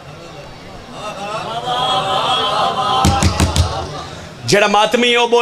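A group of men chants together in the background.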